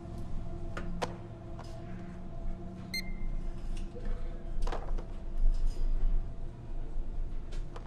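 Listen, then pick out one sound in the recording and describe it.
Cardboard boxes knock onto a checkout counter.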